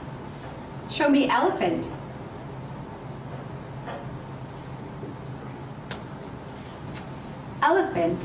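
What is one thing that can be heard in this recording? A woman speaks clearly and calmly, close by.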